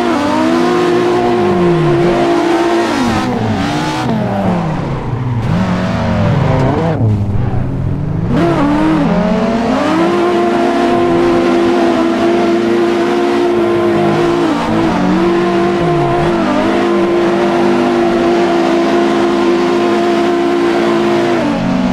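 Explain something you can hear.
Tyres screech as a car slides through bends.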